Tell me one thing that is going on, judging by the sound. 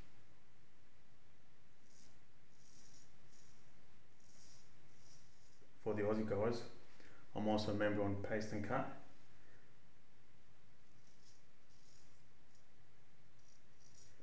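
A razor scrapes over stubble in short strokes.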